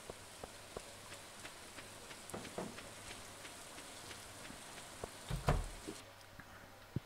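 Soft video game footsteps tap in a quick, steady rhythm.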